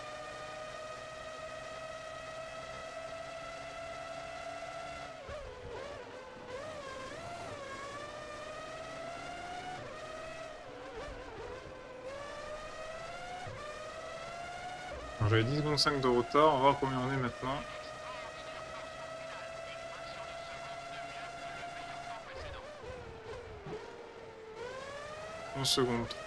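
A racing car engine whines at high speed, rising and falling as gears shift.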